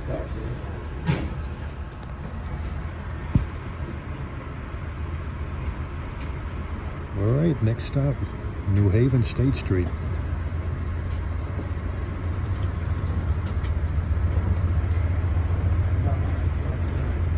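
A train rumbles steadily along the tracks, growing louder.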